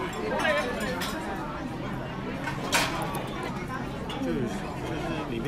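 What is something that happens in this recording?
Diners chatter all around in a busy room.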